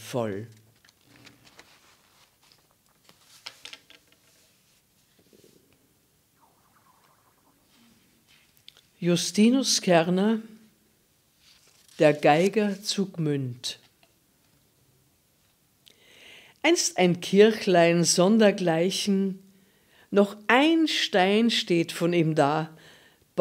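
An elderly woman reads aloud calmly and expressively into a close microphone.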